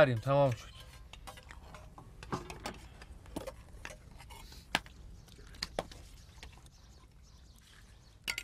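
Spoons clink against plates.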